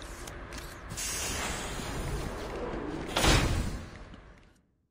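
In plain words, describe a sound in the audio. A heavy door swings open with a rush.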